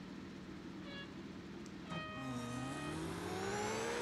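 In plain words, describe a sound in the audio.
A start signal beeps twice, the second beep longer and higher.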